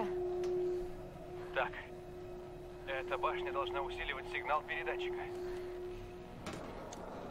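A radio set gives off a steady hum.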